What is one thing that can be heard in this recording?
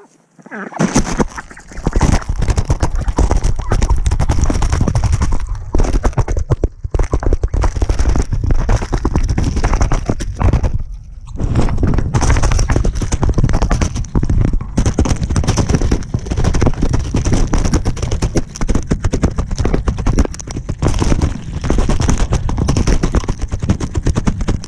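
Something knocks and rubs against the microphone.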